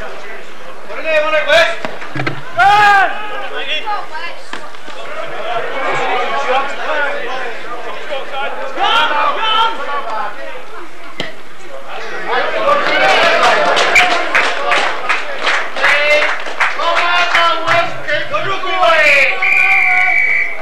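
A crowd of men shouts and calls out outdoors.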